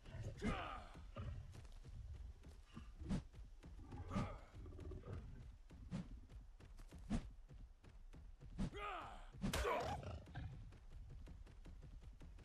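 Heavy footsteps thud on dirt.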